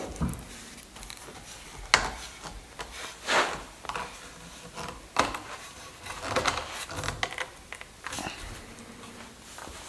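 A wooden clamp's screw creaks and squeaks as it is turned.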